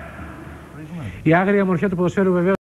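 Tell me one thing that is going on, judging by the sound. A man speaks clearly into a microphone, like a television presenter.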